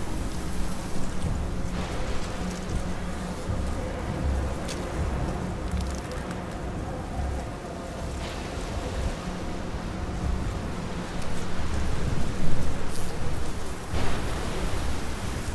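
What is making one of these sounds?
Tall grass rustles as someone crawls through it.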